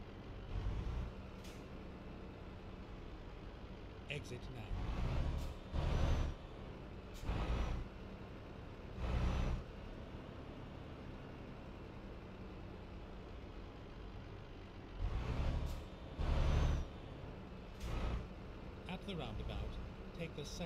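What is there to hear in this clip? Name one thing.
A truck engine hums steadily as the truck drives along.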